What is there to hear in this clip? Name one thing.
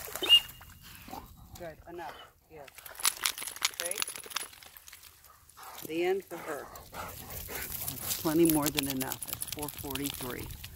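A woman talks calmly to a dog outdoors.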